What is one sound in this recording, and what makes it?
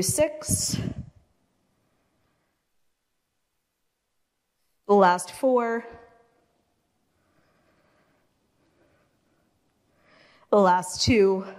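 A woman speaks in short, calm phrases close by.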